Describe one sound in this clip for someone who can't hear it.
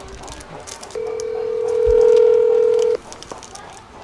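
A phone's ringing tone sounds through a speaker.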